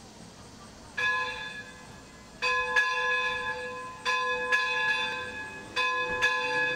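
A church bell rings out slowly, each stroke ringing on and fading.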